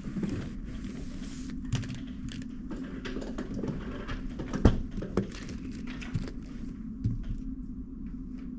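Plastic puzzle cubes click and clatter as a man's hands handle them.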